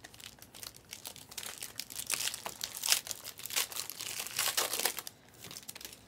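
A foil wrapper crinkles and tears close by.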